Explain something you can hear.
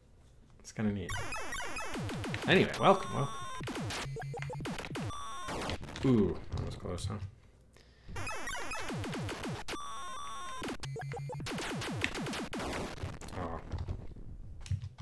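Electronic arcade game sounds bleep and zap steadily.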